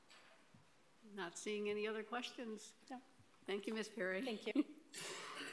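A middle-aged woman speaks into a microphone in a calm, clear voice.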